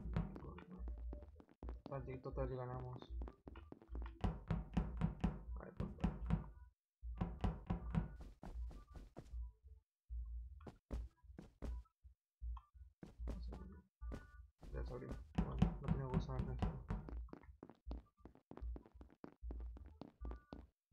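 Quick light footsteps patter on a hard floor.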